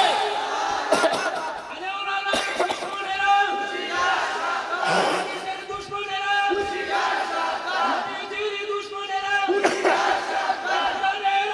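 A man chants in a long, melodic voice through a microphone and loudspeakers.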